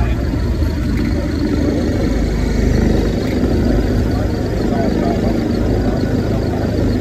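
A forklift engine hums with a steady low rumble as it drives along.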